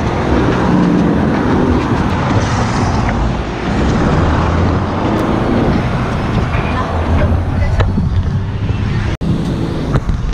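Wind and tyre noise rush loudly past an open car window.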